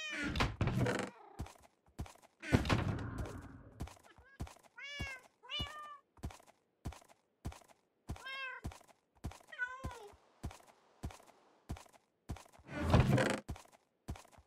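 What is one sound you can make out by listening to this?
A chest lid creaks open and thuds shut.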